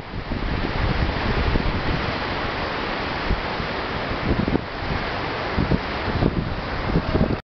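A river rushes loudly over rocks nearby.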